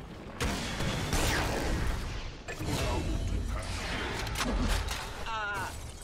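Game combat sounds crash and whoosh as magic spells burst.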